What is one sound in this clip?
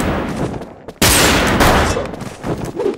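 An axe swooshes and strikes with a wet thud.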